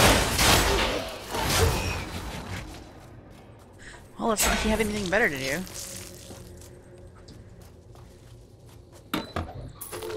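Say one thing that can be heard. Game spells burst and crackle with fiery blasts.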